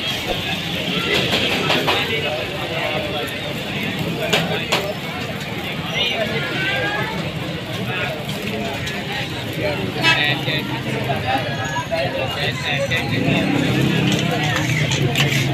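Patties sizzle and spatter in hot oil on a griddle.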